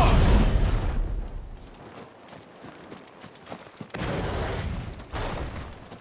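Fire bursts whoosh and roar.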